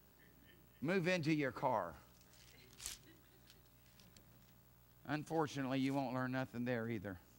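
A middle-aged man speaks calmly and clearly through a microphone.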